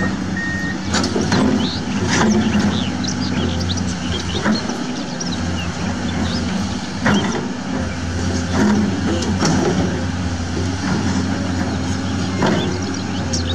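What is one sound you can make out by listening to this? An excavator bucket scrapes and knocks against sand and stone.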